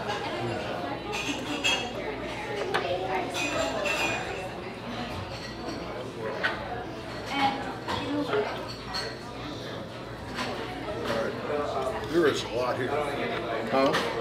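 Knives and forks scrape and clink on plates.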